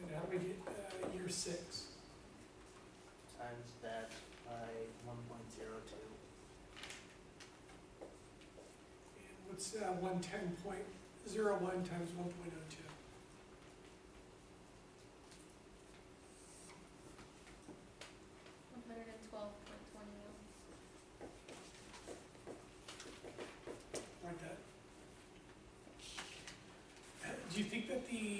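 A middle-aged man speaks calmly, pausing often.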